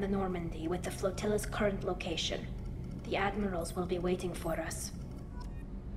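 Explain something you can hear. A young woman speaks calmly through a slightly metallic, filtered voice.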